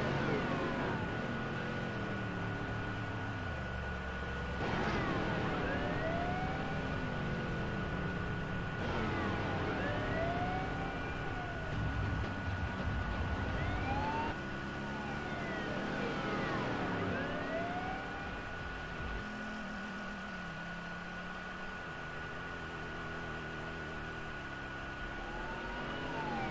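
Car engines roar and rev as cars race by.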